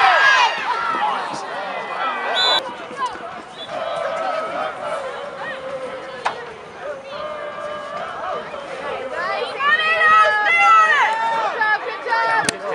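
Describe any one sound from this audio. A crowd of spectators cheers and calls out outdoors.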